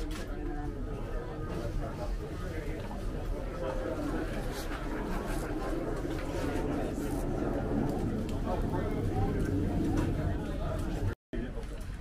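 Stiff fabric rustles as a man pulls on clothing.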